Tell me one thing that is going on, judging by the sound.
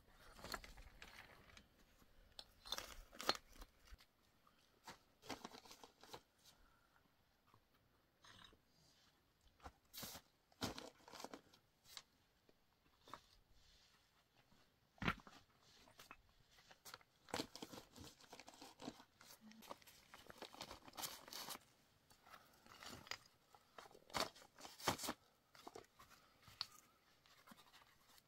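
Flat stones clack and scrape as they are laid on each other.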